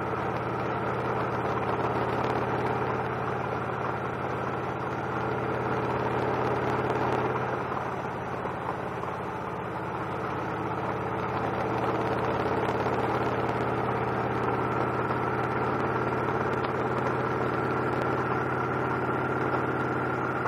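A V-twin cruiser motorcycle engine hums while cruising at speed.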